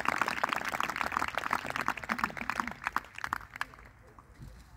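A crowd applauds outdoors, then the clapping dies away.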